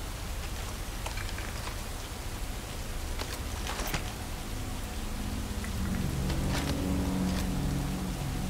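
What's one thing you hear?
A gun clicks and clatters as it is drawn and put away.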